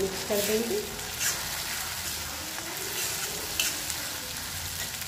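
A metal spatula scrapes and stirs food in a wok.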